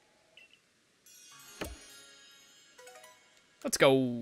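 A short game jingle chimes.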